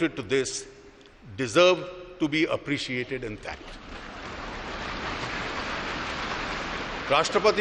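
A middle-aged man speaks calmly and formally through a microphone in a large hall.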